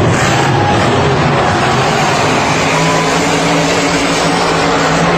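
A large crowd cheers and roars loudly in a huge echoing arena.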